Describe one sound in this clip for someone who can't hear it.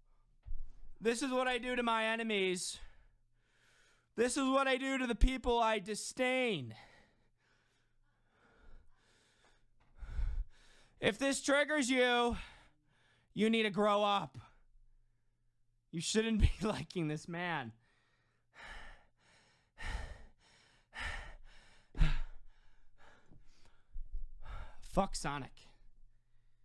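A young man speaks with animation close to a microphone, in bursts with pauses.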